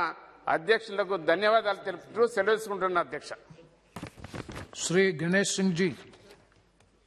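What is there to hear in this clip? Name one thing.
A middle-aged man speaks firmly into a microphone in a large hall.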